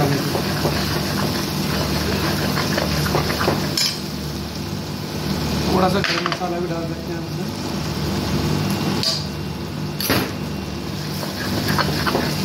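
A metal ladle scrapes and stirs in a pan.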